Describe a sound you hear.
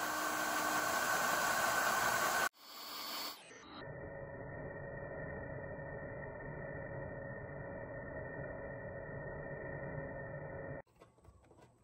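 A cordless drill whirs loudly, boring into metal.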